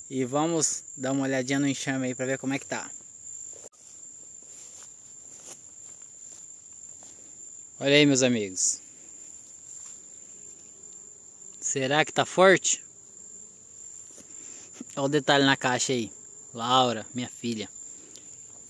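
A man speaks calmly and close by, in short bursts.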